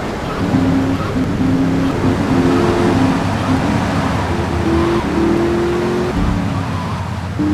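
A sports car engine drones as the car drives along.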